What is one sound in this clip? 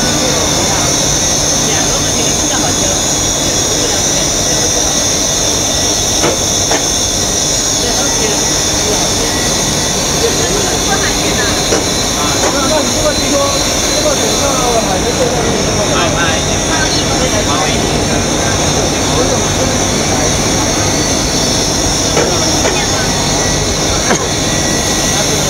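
A foam splitting machine hums and whirs steadily.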